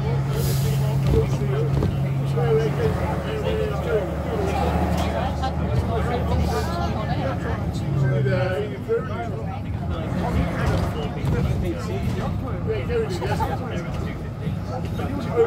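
A bus engine rumbles low and steady while driving.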